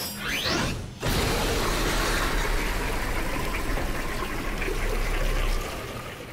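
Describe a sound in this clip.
A machine whirs and rumbles steadily.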